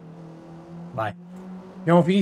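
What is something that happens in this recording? A man speaks briefly and loudly into a close microphone.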